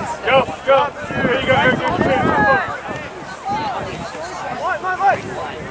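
Young players shout and call out across an open outdoor field.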